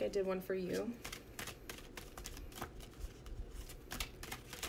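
Cards riffle and tap as they are shuffled.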